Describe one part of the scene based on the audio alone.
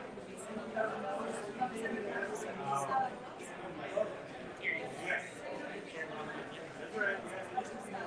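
Voices murmur in a busy room.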